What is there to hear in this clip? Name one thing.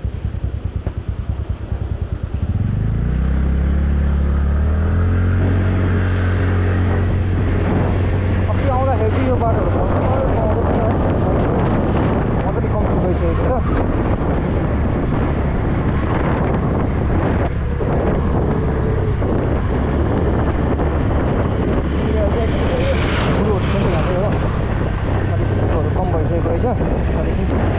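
Wind buffets and rushes past the microphone.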